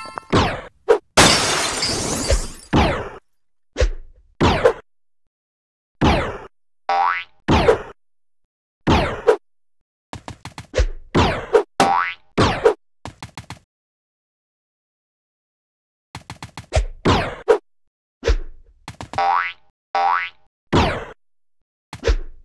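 Short springy whooshes sound again and again as a game character bounces and leaps.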